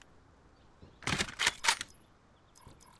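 A rifle clatters and rattles as it is handled.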